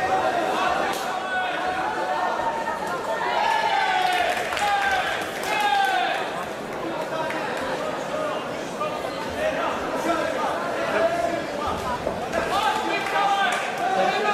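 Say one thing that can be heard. Boxing gloves thud against bodies as kickboxers exchange punches.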